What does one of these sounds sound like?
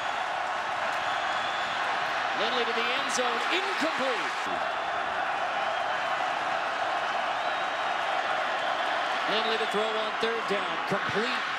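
A large crowd roars steadily in a big echoing stadium.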